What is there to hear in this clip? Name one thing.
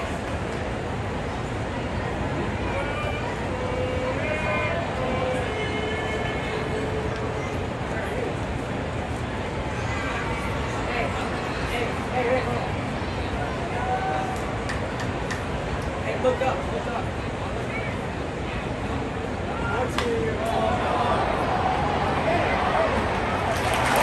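Nearby spectators talk and call out.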